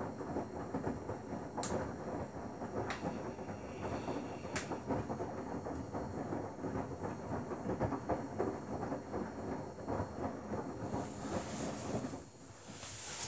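A front-loading washing machine tumbles wet laundry in its drum.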